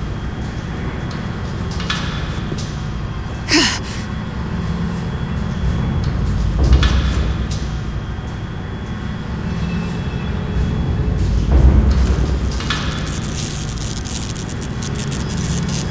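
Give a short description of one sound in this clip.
A lift rumbles and hums steadily as it moves.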